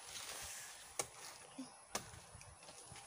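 A pole knocks sharply against a palm tree.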